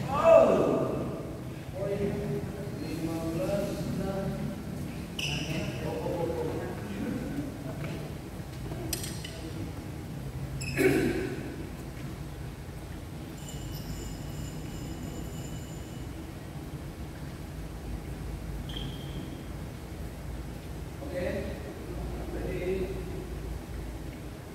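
Men talk and call out nearby in an echoing hall.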